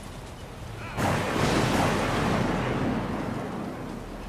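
Glass shatters and debris crashes loudly.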